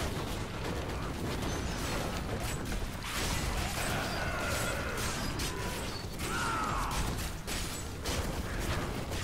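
Fire spells roar and crackle in a game battle.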